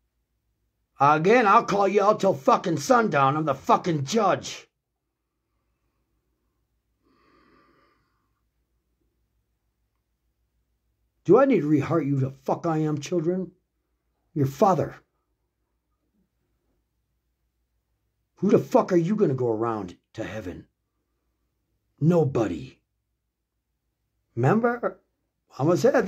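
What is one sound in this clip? A middle-aged man speaks calmly and close to the microphone, in short bursts with pauses.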